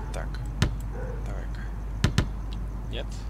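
A basketball bounces on hard ground.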